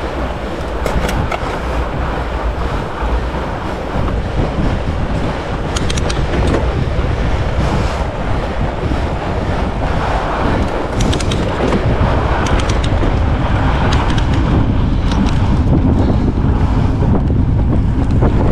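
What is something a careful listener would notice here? A bicycle chain and gears click and rattle.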